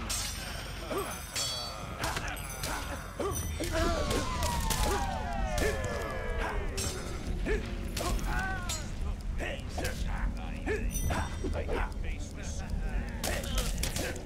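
A magical spell whooshes and swirls.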